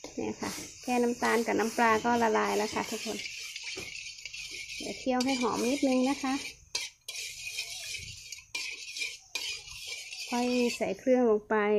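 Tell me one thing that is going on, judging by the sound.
A metal spoon scrapes and taps against a metal pan.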